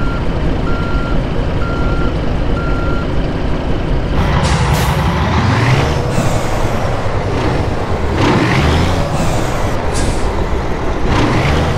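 A truck engine idles and rumbles steadily.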